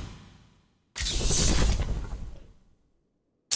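An electronic whoosh and chime sounds.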